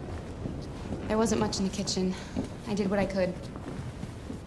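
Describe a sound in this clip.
A young woman speaks softly and calmly, close by.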